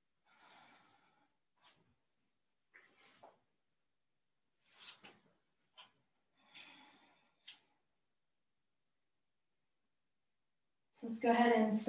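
A woman speaks calmly and softly close by, with short pauses.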